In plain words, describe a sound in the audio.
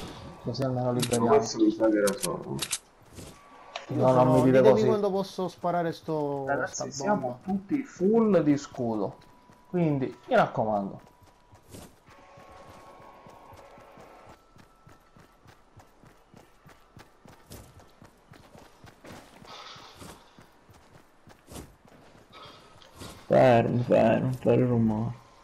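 Quick footsteps patter on grass.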